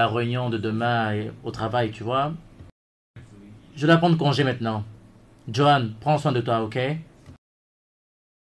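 A man speaks angrily nearby.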